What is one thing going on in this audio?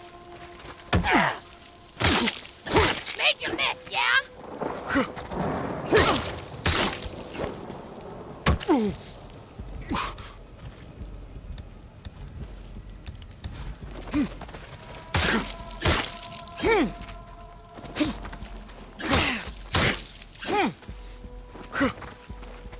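Heavy blows land with thuds and sharp cracks.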